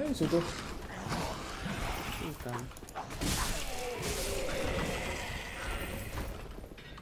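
Metal weapons clash and clang in a fight.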